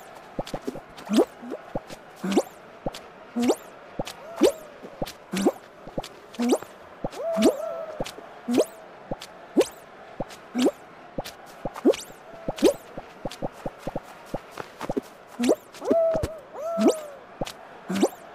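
A cartoon character jumps with bouncy springing sounds.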